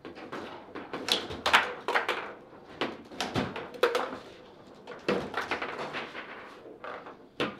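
A ball clacks sharply against plastic players and table walls.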